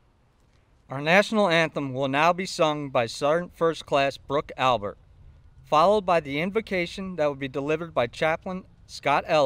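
A man speaks calmly through a microphone and loudspeaker outdoors.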